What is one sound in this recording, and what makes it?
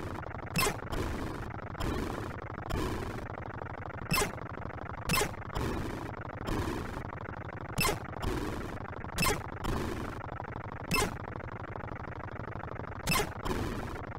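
A game engine drones steadily.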